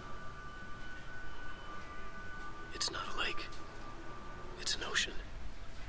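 A television hisses softly with static.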